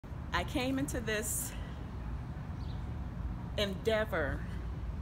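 A middle-aged woman speaks with animation close to the microphone.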